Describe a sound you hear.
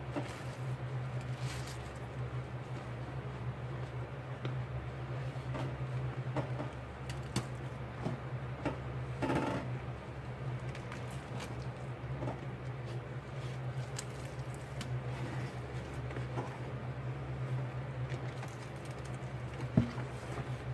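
Gloved hands squish and slosh through thick wet foam.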